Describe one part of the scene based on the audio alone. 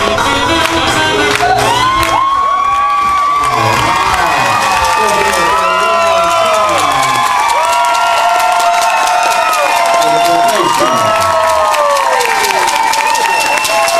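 A crowd claps along in a steady rhythm.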